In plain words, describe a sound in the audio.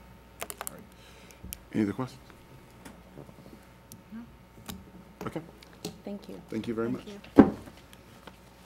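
A woman speaks to a small group, picked up by a microphone.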